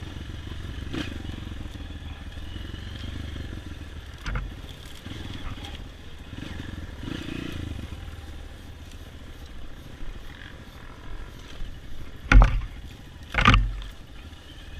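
A dirt bike's frame knocks and rattles over bumps.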